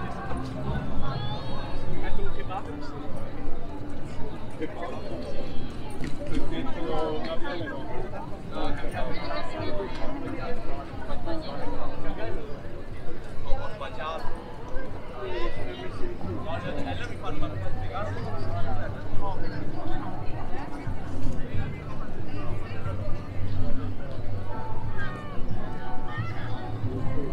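A crowd of people chatter nearby, outdoors in an open square.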